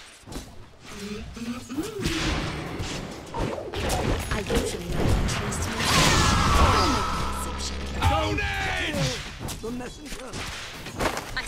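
Game spells and weapons clash and crackle in a fight.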